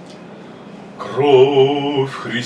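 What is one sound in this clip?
A man sings loudly.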